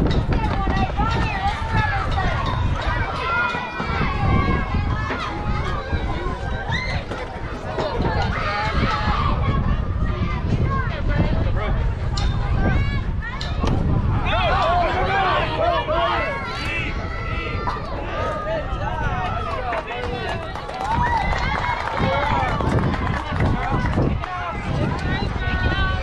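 Young players and spectators shout and cheer outdoors.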